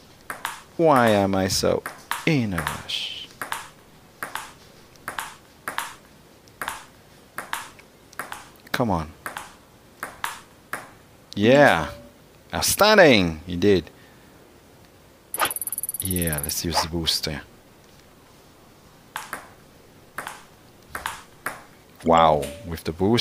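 A table tennis ball clicks sharply on a table and paddles in a quick rally.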